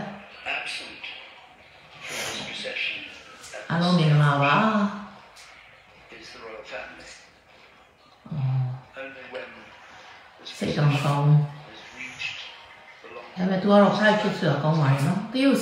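A middle-aged woman speaks calmly close to a microphone.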